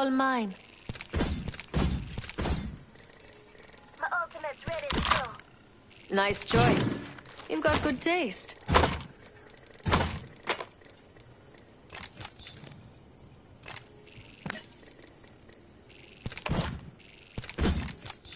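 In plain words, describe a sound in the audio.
Short game pickup sounds click and chime as items are taken.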